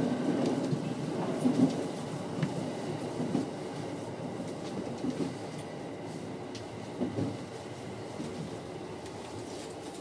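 A train rumbles steadily along the track, heard from inside the cab.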